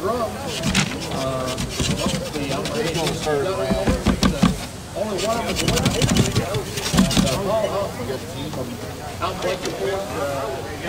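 A crowd of people talks outdoors.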